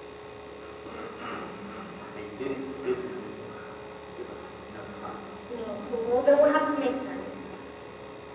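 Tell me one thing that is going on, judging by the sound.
A woman speaks, heard from far off in an echoing hall.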